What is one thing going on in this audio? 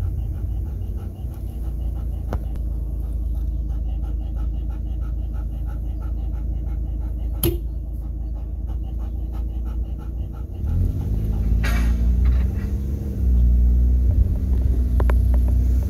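A car engine hums steadily inside a moving car, then rises as the car speeds up.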